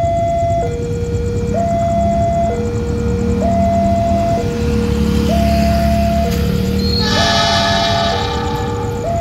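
A diesel locomotive rumbles as it approaches.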